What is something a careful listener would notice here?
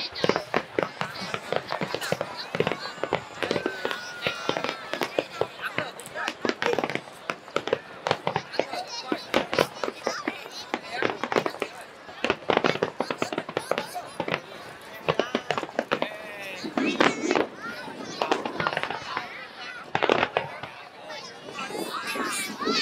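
Fireworks boom and crackle in rapid bursts.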